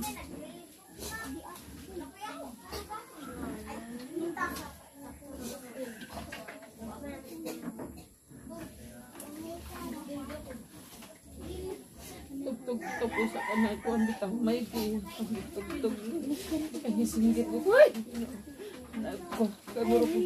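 Several women talk quietly nearby.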